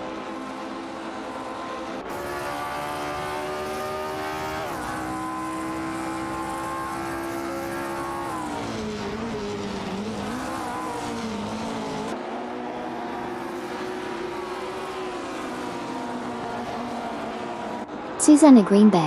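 A racing car engine roars at high revs, shifting up and down through the gears.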